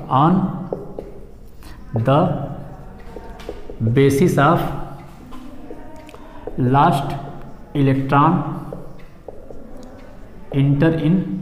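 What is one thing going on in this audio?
A man speaks slowly and clearly nearby, in short phrases.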